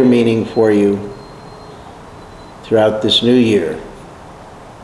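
An older man speaks calmly and close by, in short bursts.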